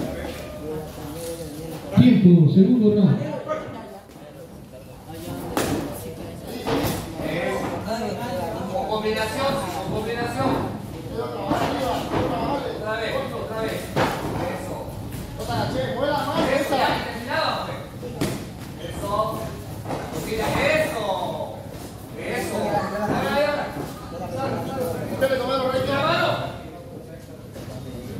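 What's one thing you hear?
Feet shuffle and stamp on the ring floor.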